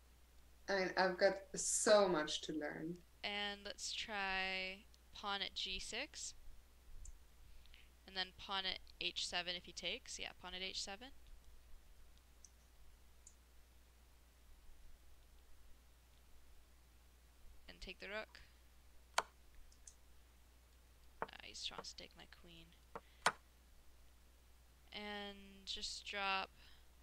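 A young woman talks with animation over a headset microphone.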